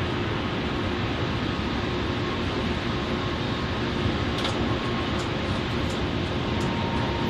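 A bus engine drones steadily.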